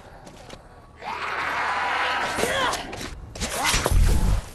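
A zombie growls and groans close by.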